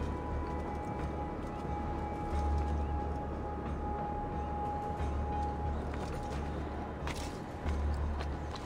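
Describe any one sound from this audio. Footsteps clatter on roof tiles.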